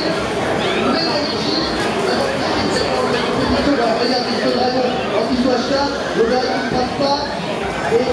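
Video game punches and kicks thump through loudspeakers.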